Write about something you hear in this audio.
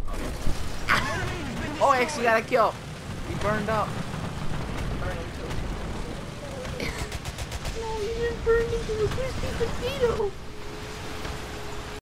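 A tank engine rumbles low and steady as the tank drives.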